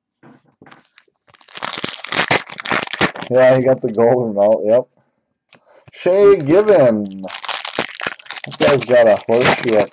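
A foil wrapper crinkles and tears loudly.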